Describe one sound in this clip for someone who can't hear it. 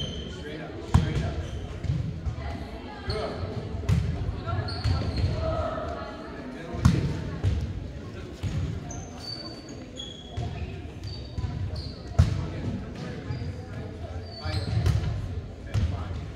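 Shoes squeak sharply on the gym floor.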